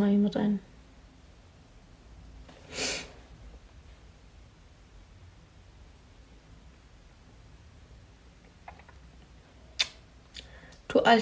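A young woman speaks briefly and calmly, close to the microphone.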